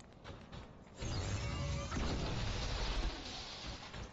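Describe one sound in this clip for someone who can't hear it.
A heavy energy weapon fires a loud, crackling burst.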